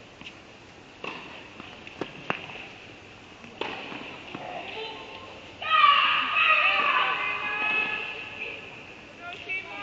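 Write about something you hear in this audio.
Two young women talk quietly to each other in a large echoing hall.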